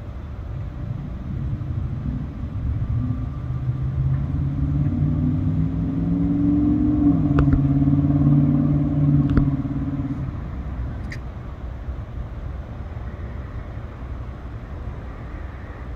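A diesel freight locomotive rumbles as it approaches.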